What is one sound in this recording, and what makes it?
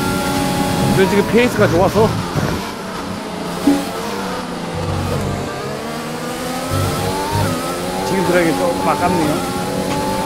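Engine pops and crackles rapidly as the car slows for a corner.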